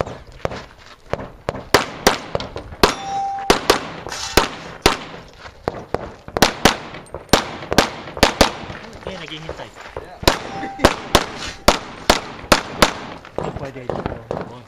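Pistol shots crack in rapid bursts outdoors, echoing off the hills.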